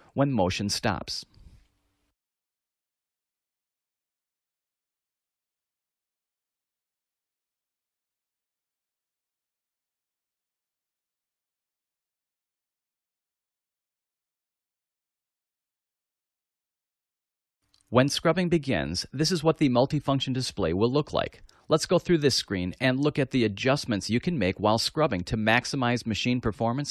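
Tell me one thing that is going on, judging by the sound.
A man speaks calmly into a microphone, as if presenting.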